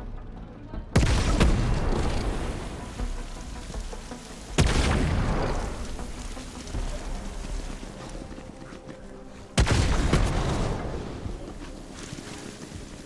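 Grenades explode with loud booms that ring out and fade.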